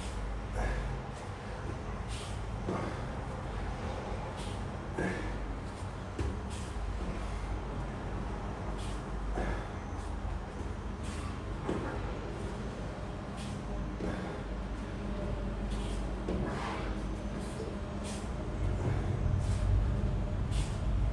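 A body rolls and thumps softly on an exercise mat.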